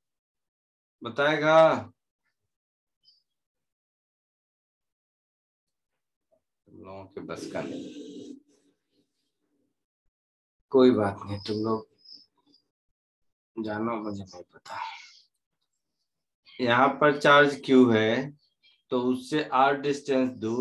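A man explains in short bursts through a microphone, as in an online lecture.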